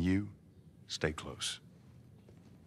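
A man speaks briefly and calmly.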